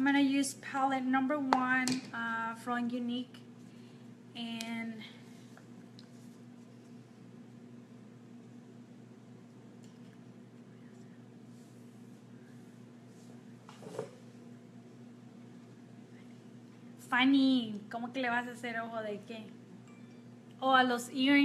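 A woman talks casually and close up, with pauses.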